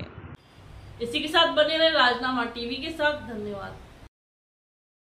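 A young woman reads out the news calmly through a microphone.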